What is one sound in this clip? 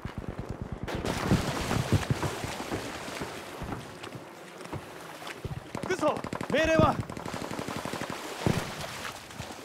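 Water splashes as someone wades through the shallows.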